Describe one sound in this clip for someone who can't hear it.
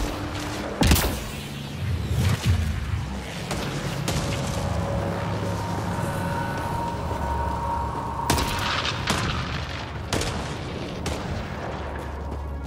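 Fires crackle and roar nearby.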